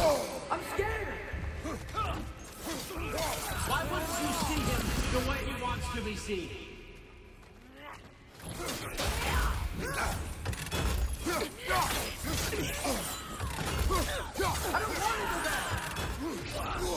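Blades slash and clash in a fierce fight.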